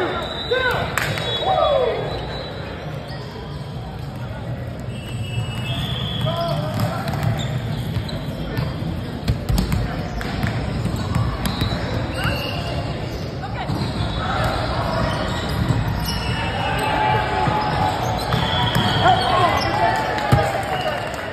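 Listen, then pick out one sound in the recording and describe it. A volleyball thuds against hands and arms.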